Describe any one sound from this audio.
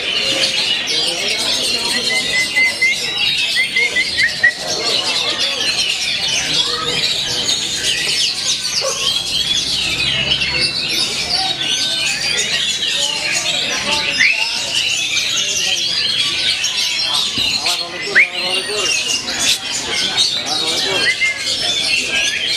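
Many other birds chirp and twitter all around.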